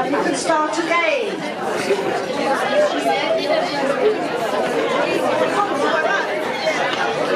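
A crowd of elderly women chatter and laugh nearby.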